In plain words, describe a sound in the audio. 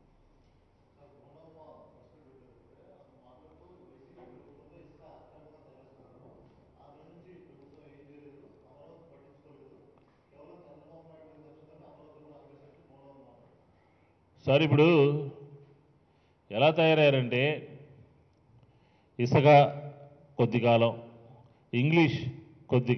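A middle-aged man speaks into a microphone, softly at first and then loudly and forcefully.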